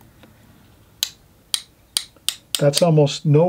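Paintbrush handles tap and click against each other.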